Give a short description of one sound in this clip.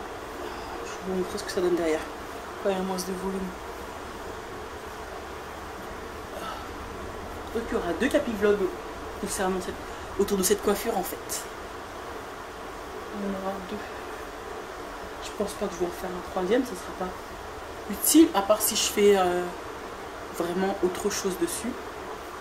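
A young woman talks casually in short bursts, close by.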